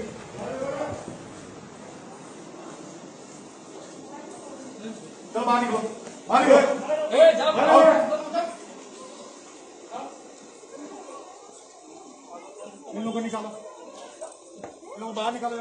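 A crowd of men shouts and clamours nearby.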